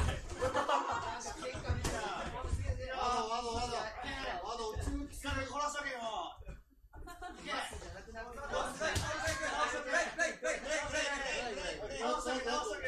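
Boxing gloves thud against pads and bodies.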